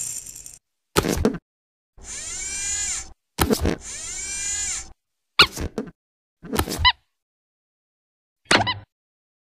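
A metal claw clanks and clatters.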